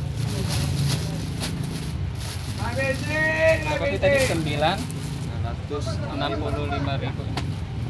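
Banknotes rustle as they are counted.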